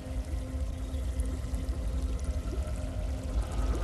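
Water bubbles and splashes in a fountain.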